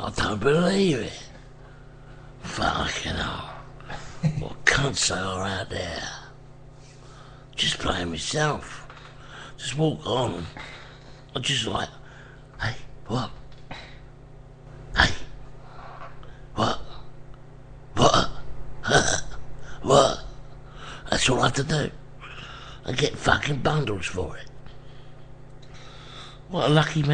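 A man talks into a microphone in short bursts with pauses.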